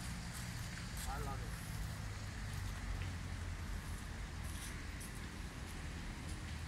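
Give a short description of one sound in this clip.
Metal balls knock together on gravel.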